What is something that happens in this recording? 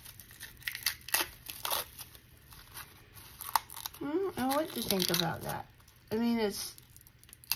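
Plastic wrap crinkles and rustles as it is handled.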